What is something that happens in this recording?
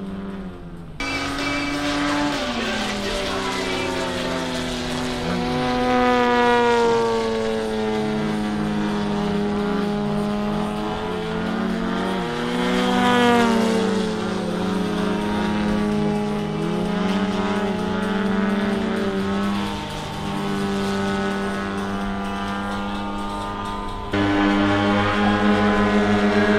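Small model airplane engines whine loudly overhead, rising and falling in pitch as they loop.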